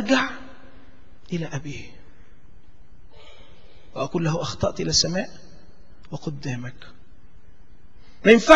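A middle-aged man preaches emphatically into a microphone, in bursts with pauses.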